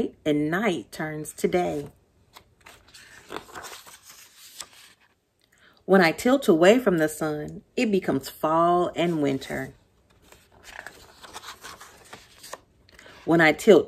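A woman reads aloud with animation, close by.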